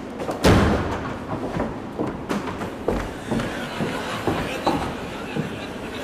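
Footsteps thud across a wooden stage.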